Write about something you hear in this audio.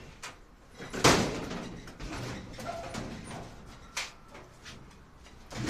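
A sheet-metal dryer drum scrapes and clunks as it is pulled out of the cabinet.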